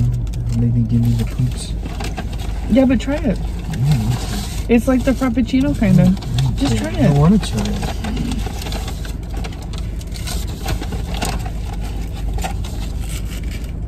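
Paper wrapping crinkles.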